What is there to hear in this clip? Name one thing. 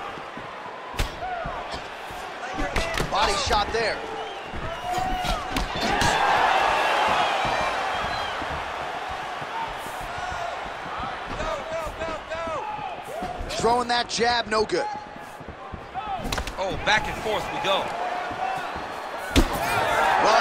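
Kicks and punches land with heavy thuds.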